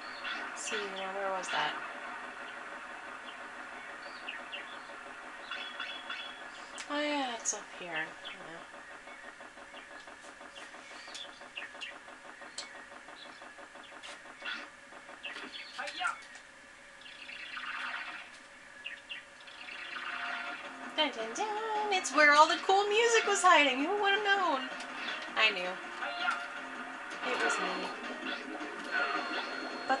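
Video game music plays from a television speaker.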